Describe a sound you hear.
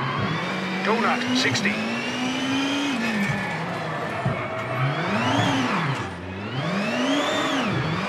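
A racing car engine revs up and down through gear changes.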